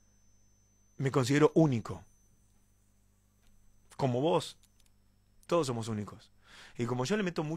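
A man speaks calmly and close into a microphone, in short bursts with pauses.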